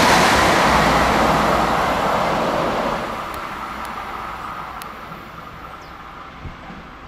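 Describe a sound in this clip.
An electric passenger train rolls past on the rails and fades into the distance.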